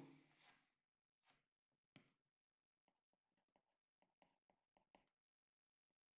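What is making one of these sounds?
A pen scratches and taps on a writing surface.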